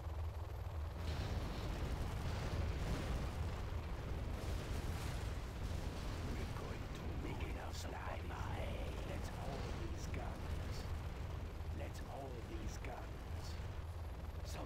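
A large explosion roars and rumbles.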